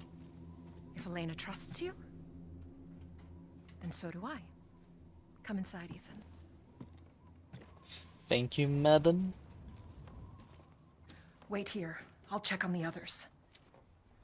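An older woman speaks calmly and quietly, up close.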